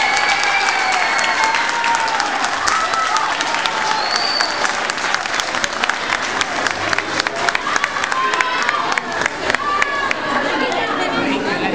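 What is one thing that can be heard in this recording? A crowd claps along in rhythm.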